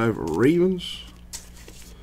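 A plastic card sleeve rustles and crinkles between fingers.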